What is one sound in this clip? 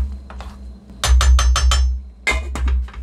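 A metal lid clanks against a pan and rings briefly.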